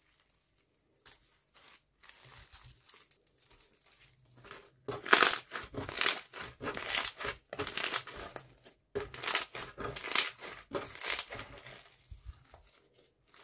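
Hands squish and squeeze sticky slime, making wet crackling and popping sounds.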